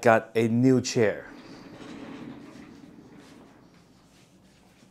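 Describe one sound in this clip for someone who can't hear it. Chair wheels roll across a wooden floor.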